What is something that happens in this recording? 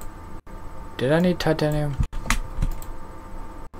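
A man speaks briefly and with animation into a microphone, close by.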